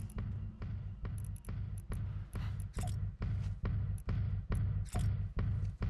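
Upbeat dance music with a heavy, steady thumping beat plays.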